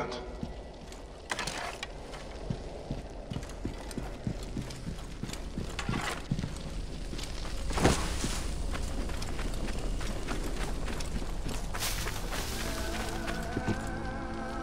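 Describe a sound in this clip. Footsteps scuff and tap on stone.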